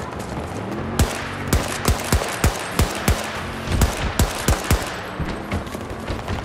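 A rifle fires in rapid bursts of sharp shots.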